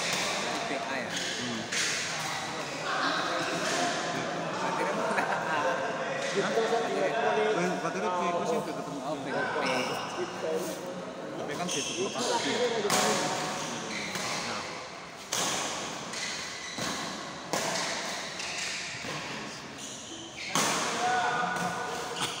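Spectators talk and call out in a large echoing hall.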